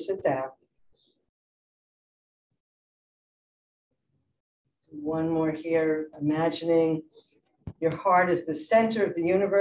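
A middle-aged woman speaks calmly through a microphone on an online call.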